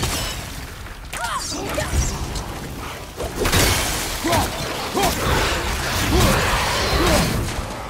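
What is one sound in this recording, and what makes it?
A man grunts with effort while fighting.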